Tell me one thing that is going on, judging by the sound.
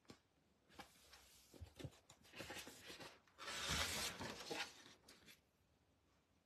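Sheets of paper rustle and slide against each other.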